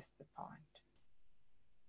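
A middle-aged woman speaks briefly over an online call.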